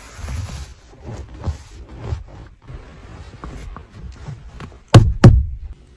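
A hand pats and rubs a leather seat.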